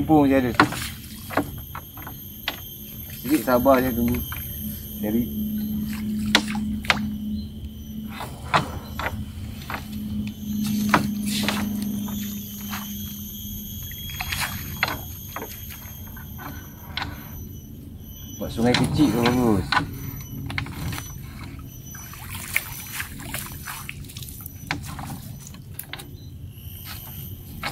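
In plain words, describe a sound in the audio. Water drips and splashes from a wet net onto a boat.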